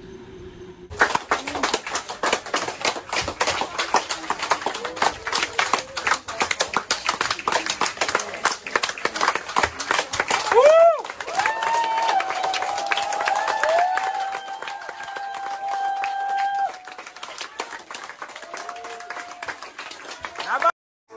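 A large crowd claps and applauds steadily.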